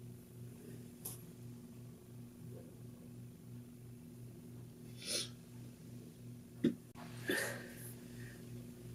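A young woman sniffles while crying softly close by.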